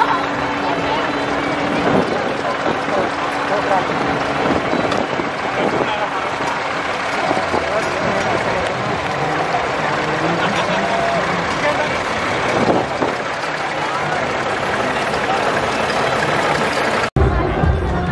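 A vintage tractor engine putters as it rolls past.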